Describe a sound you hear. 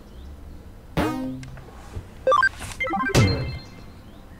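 A game menu gives short electronic blips as it switches.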